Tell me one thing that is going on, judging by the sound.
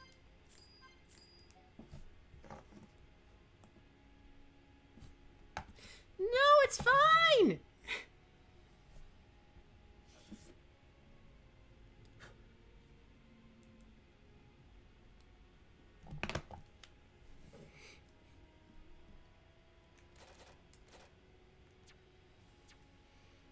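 Short electronic menu blips sound as selections are made.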